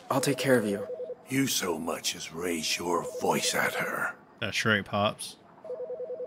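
An elderly man speaks sternly and threateningly, close by.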